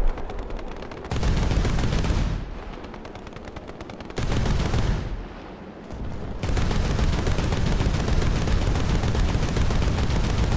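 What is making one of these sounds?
Loud explosions boom nearby.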